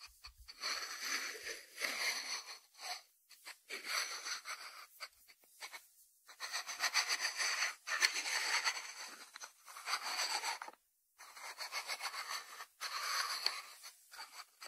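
A ceramic lid scrapes and rubs as it is turned on its jar.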